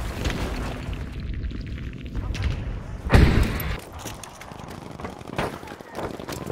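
Gunshots crack loudly and echo outdoors.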